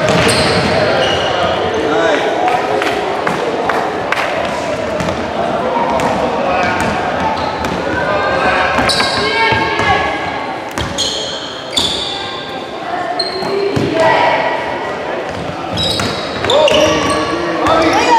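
Players and spectators call out, echoing in a large gym.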